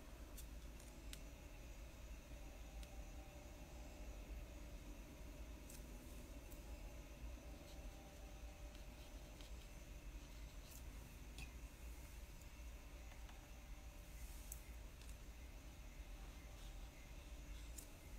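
A brush taps and strokes softly on paper.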